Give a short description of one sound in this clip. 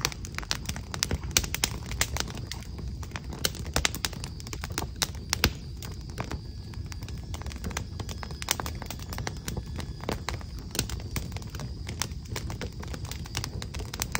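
Fingers tap quickly on keys close by.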